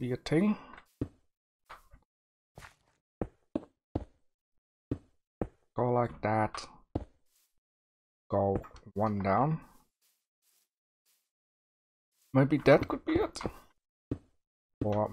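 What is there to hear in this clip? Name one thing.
Blocks knock softly as they are placed one after another.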